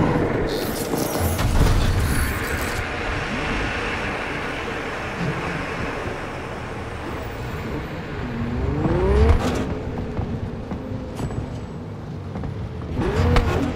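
A car engine revs and roars as the car drives off.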